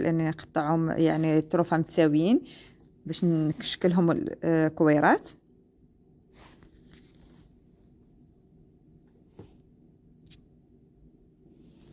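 Hands roll soft dough on a countertop with a faint rubbing sound.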